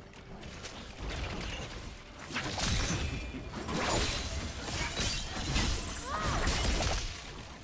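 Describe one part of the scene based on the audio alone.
Magic spells whoosh and crackle in quick bursts during a fight.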